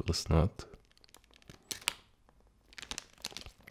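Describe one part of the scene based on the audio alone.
A plastic wrapper crinkles softly in someone's hands.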